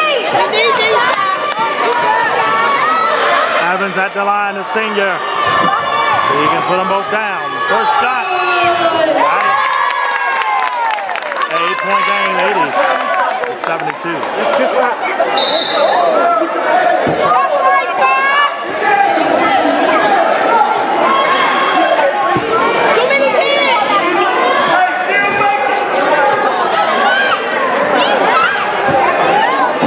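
A crowd of spectators chatters and shouts close by in a large echoing hall.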